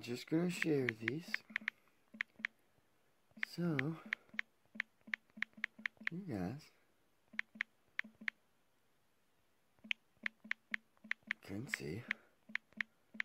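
A man speaks calmly close to a microphone, in short bursts.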